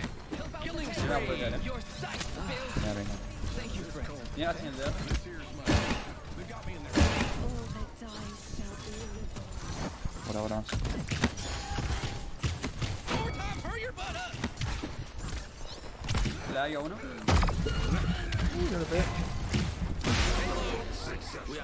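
Bowstrings twang as arrows are loosed in quick succession.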